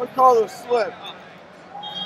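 A male referee shouts loudly nearby.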